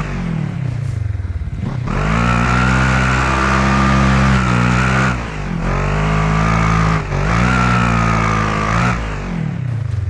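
Tyres crunch and slide over loose dirt and rocks.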